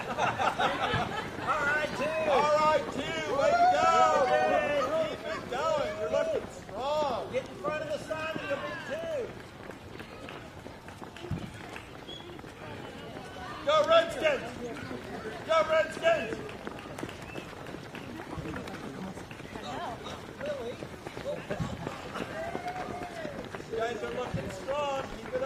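Many runners' footsteps patter on pavement.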